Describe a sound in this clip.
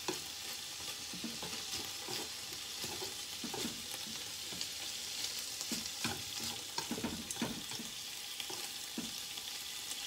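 Chopsticks scrape and tap against a frying pan.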